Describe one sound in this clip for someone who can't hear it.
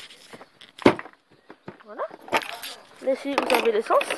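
A plastic seat lid thumps shut.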